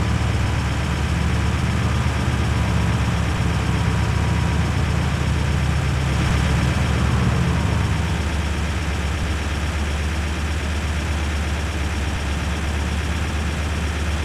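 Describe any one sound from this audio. A truck engine hums steadily at speed.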